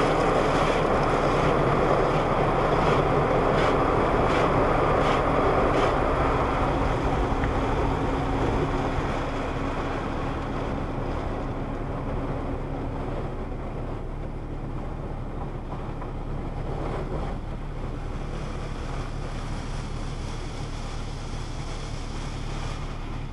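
A car wash machine hums steadily.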